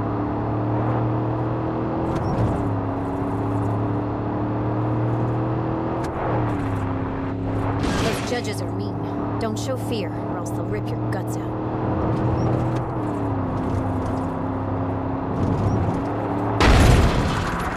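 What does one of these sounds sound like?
A car engine hums steadily and shifts gears as it drives along a road.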